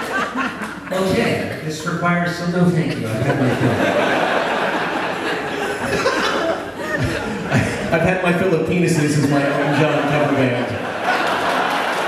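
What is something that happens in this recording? A man sings through a microphone.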